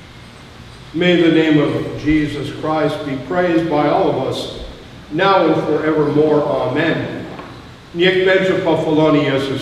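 An elderly man reads aloud through a microphone in a large echoing room.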